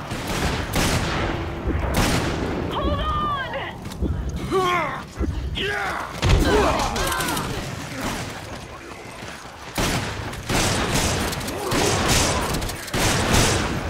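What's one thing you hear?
Guns fire in loud, sharp bursts again and again.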